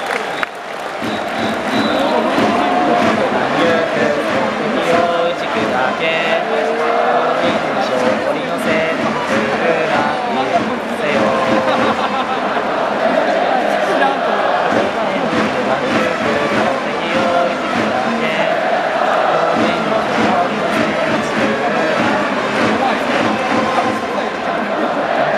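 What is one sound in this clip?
A large crowd of fans chants and sings loudly and steadily in a big stadium.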